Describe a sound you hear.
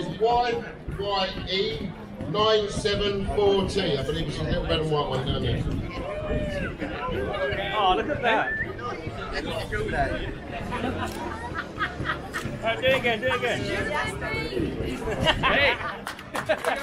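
A man speaks loudly to a crowd outdoors.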